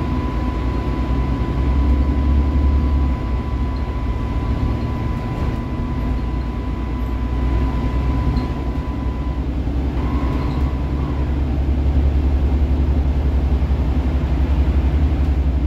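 A natural-gas articulated city bus drones and rumbles as it drives, heard from inside.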